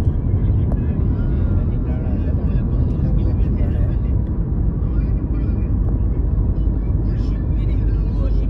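A car drives along a road, its engine and tyres rumbling steadily from inside.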